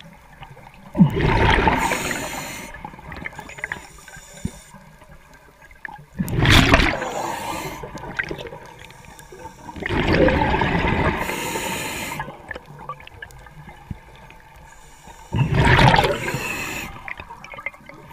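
Air bubbles gurgle and rush from a diver's breathing regulator in bursts underwater.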